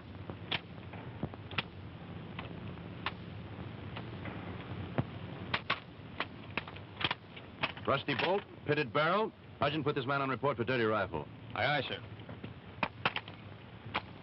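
A rifle clicks and clacks as it is handed over.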